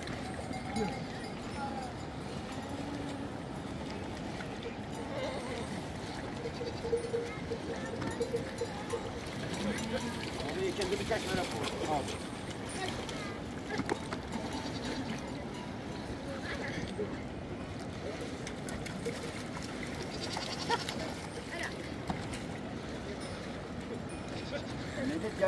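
Goats bleat close by.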